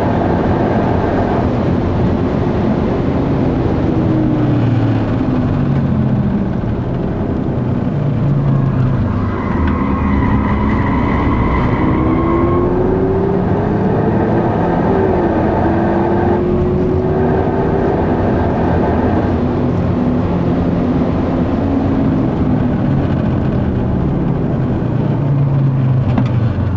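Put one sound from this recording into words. Tyres rumble on the track.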